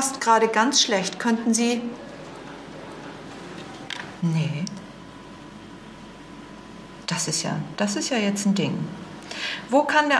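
A middle-aged woman talks calmly into a telephone close by.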